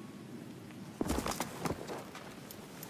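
A rifle fires a single loud shot that rings out.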